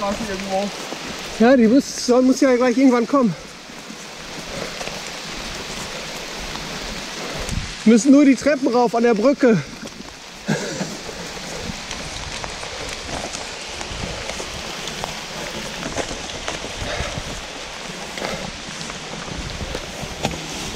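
Footsteps crunch on dry leaves and forest ground.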